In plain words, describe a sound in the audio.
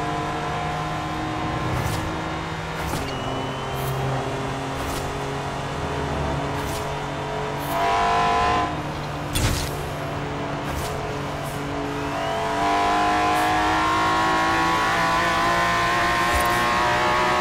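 A car engine roars at high speed, shifting gears as it revs.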